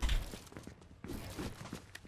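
A pickaxe strikes wood with sharp thuds.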